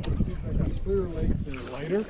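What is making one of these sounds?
Water splashes beside a boat.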